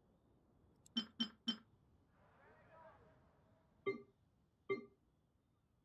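Short clicks of a game menu sound one after another.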